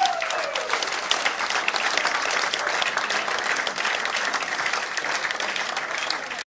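A small band plays acoustic string instruments live in a hall.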